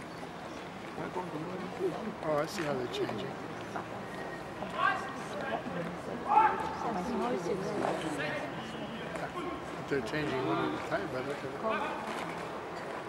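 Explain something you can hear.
A man shouts drill commands outdoors.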